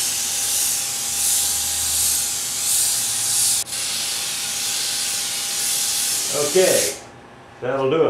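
A paint spray gun hisses steadily close by.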